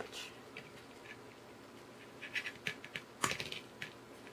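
Pliers snip through a wire with a sharp click.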